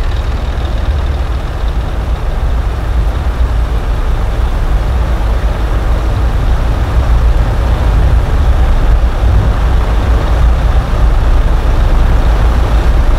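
A heavy truck engine rumbles steadily at idle.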